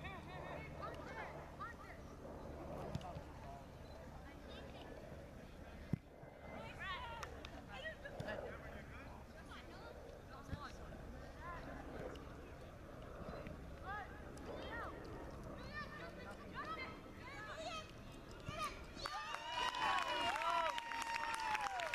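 Young players shout to one another across an open field.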